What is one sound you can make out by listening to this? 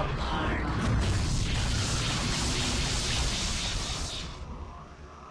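A magical energy effect whooshes and hums loudly.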